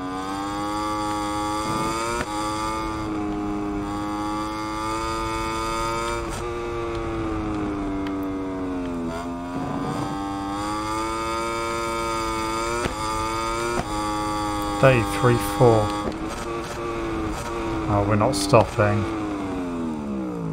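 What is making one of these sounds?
A racing motorcycle engine whines at high revs, rising and falling in pitch as it shifts gears.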